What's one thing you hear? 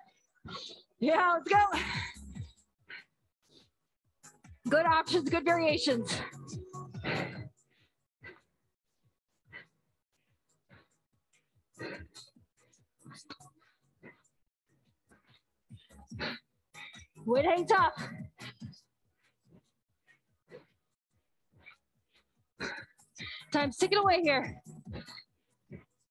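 A woman gives exercise instructions in short bursts.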